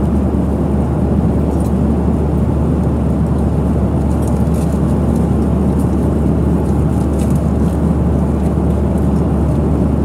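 A plane's engines roar steadily in the cabin.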